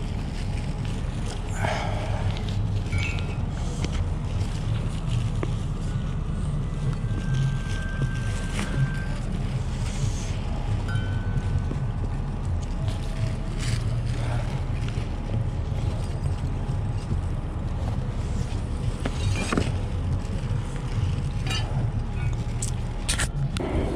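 Caps and fabric rustle and shuffle as hands sort through a pile.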